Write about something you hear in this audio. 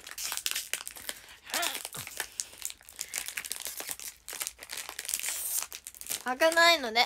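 Rustling and crackling handling noises sound close by.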